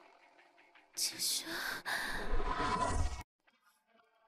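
A young woman speaks softly and breathily.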